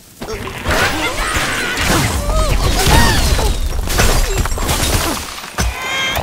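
Wooden and stone blocks crash and tumble down.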